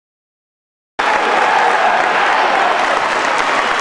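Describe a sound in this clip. A large crowd cheers and shouts loudly in an echoing hall.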